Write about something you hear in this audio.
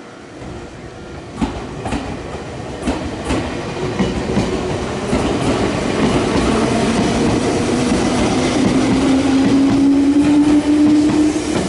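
Train wheels clatter over the rail joints, faster and louder.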